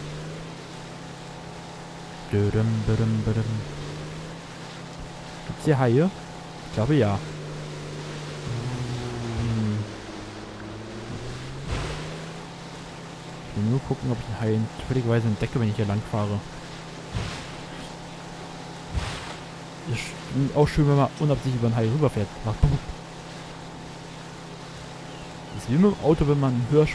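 Water splashes and hisses against a boat's hull.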